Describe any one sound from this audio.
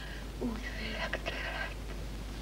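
Lips smack in a kiss up close.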